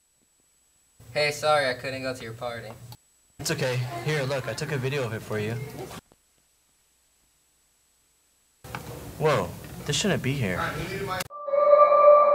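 Two teenage boys talk to each other close by.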